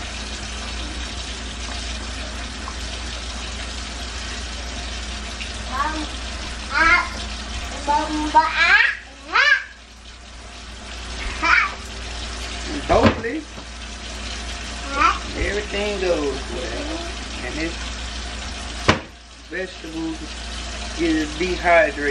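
A utensil stirs and scrapes food in a pan.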